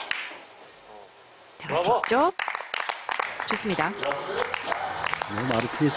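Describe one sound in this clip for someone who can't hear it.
Billiard balls clack against each other.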